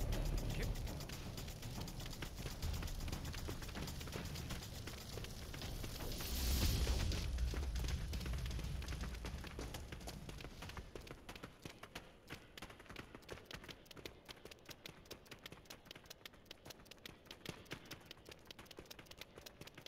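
A game character's footsteps patter quickly on stone.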